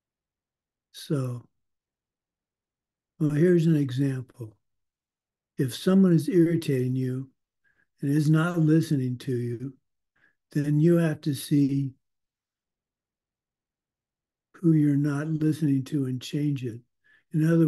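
A middle-aged man speaks calmly in short phrases over an online call, with pauses between.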